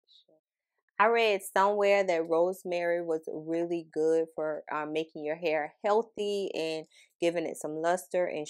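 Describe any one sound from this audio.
A young woman talks close to a microphone with animation.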